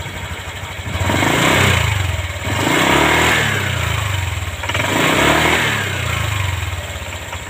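A scooter engine revs up briefly three times.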